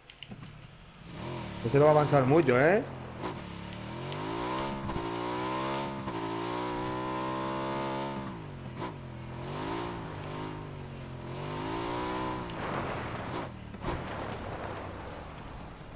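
A motorcycle engine revs and roars, rising and falling as it rides over rough ground.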